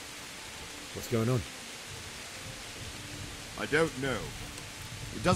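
A young man asks a question calmly.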